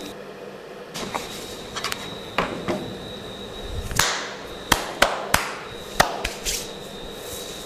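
Hands clap and slap sharply several times.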